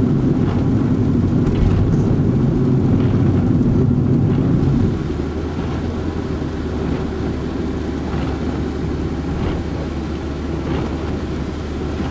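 A car engine hums with a low steady rumble as the car drives along.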